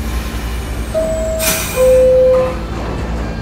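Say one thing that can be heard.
A train horn sounds two short tones, one after the other.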